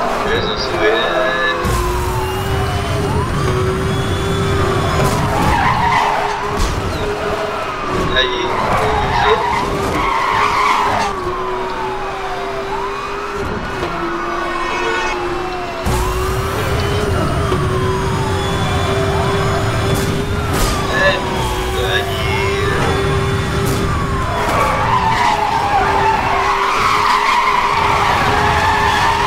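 A police siren wails, rising and falling over and over.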